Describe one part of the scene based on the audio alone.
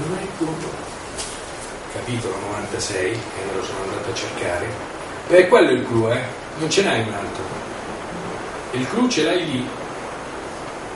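An elderly man reads aloud nearby in a room with a slight echo.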